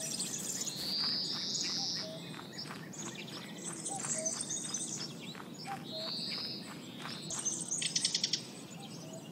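Light footsteps patter steadily on a path.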